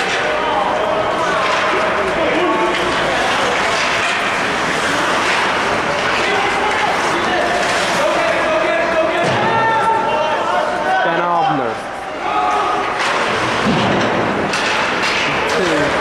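Adult spectators talk and call out nearby in an echoing hall.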